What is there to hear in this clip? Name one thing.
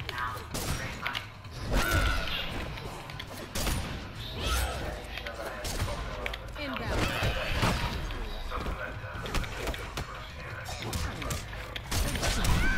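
Fighters trade heavy punches and kicks with sharp thudding hits.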